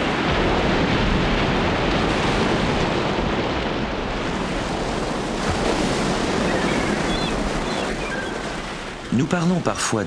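Waves crash and roar loudly against rocks.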